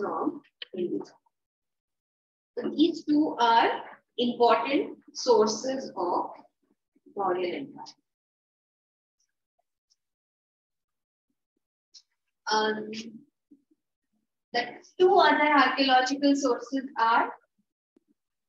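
A woman speaks calmly and clearly into a microphone, pausing now and then.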